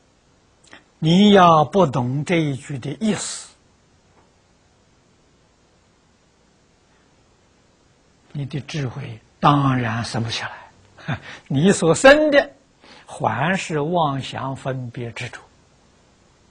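An elderly man speaks calmly and clearly into a close microphone, with pauses.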